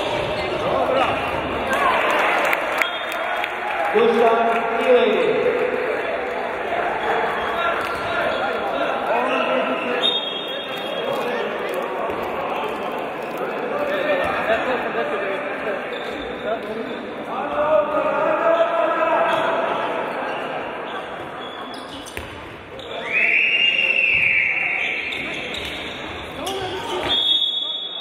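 A handball bounces and thumps on the floor.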